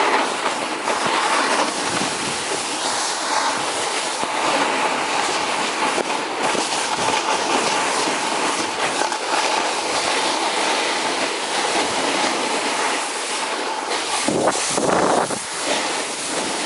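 A snowboard hisses and scrapes steadily over snow.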